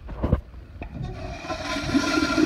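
Water gushes into a toilet bowl as it flushes.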